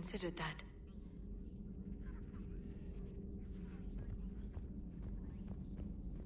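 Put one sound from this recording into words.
Footsteps tap on a metal floor.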